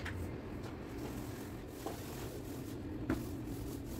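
A paint roller rolls softly over a wall.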